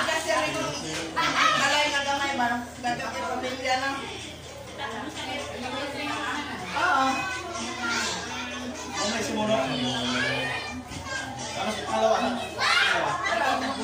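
Several men and women talk and laugh nearby.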